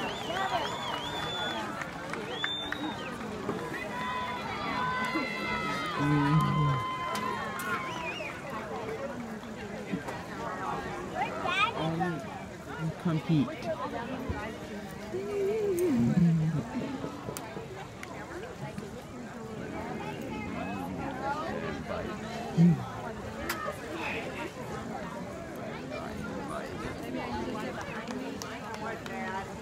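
A crowd of spectators chatters outdoors nearby.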